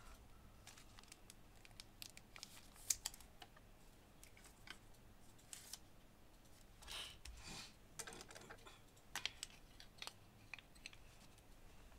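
A plastic card sleeve crinkles and rustles close by.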